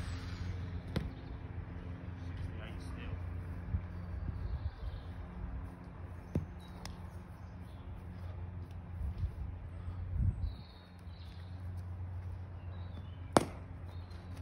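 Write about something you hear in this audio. A cricket ball is struck by a bat with a sharp crack.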